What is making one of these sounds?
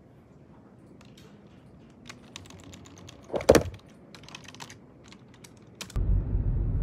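Fingers tap quickly on a computer keyboard.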